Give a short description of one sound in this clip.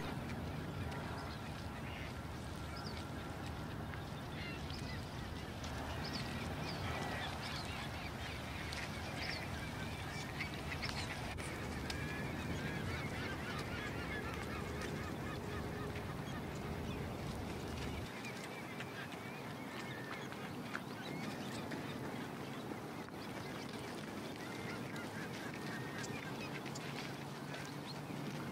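Birds chirp and call nearby.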